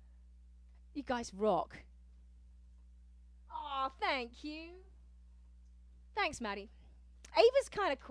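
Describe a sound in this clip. A young woman talks with animation, close to a microphone, in short bursts.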